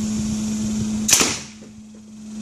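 A homemade pipe launcher fires with a sharp, loud pop.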